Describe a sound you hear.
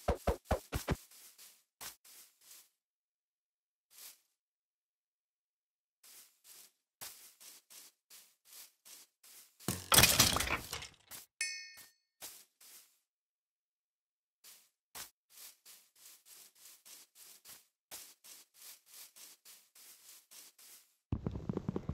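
Footsteps thud softly on grass at a steady walking pace.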